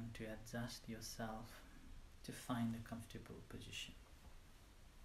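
A man speaks calmly and slowly into a clip-on microphone, close by.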